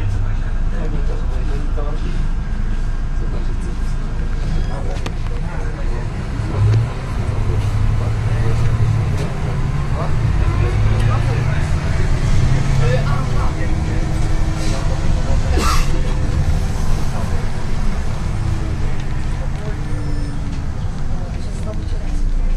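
Traffic hums along the street outside.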